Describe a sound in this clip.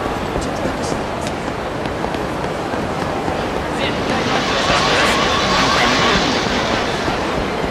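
Footsteps patter quickly on pavement.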